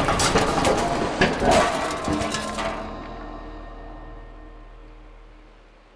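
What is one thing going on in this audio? A small animal scurries over loose rubble.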